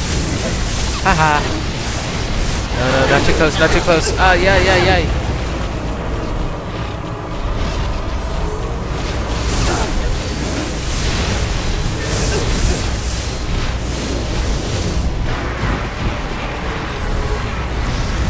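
Fiery blasts and explosions roar in a fantasy battle.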